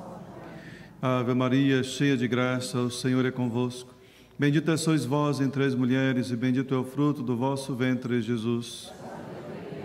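A man chants slowly into a microphone in an echoing hall.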